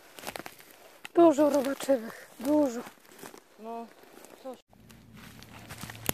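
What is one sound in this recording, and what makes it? Footsteps crunch on dry twigs and forest floor.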